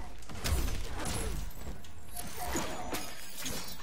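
An icy blast whooshes.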